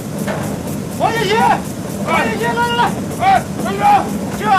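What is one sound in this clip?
A middle-aged man calls out loudly from a distance.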